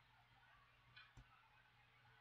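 A game stone clicks onto a wooden board.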